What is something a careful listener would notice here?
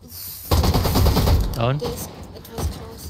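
Gunshots crack in quick succession.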